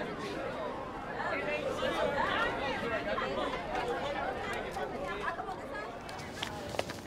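A crowd of teenagers chatters loudly in a busy hallway.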